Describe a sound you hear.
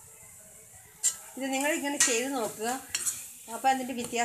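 A metal spatula scrapes and clatters against an iron pan.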